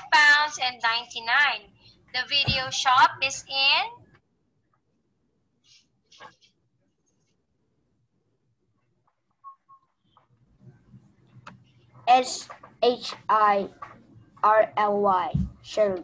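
A young woman speaks clearly through an online call microphone, pausing now and then.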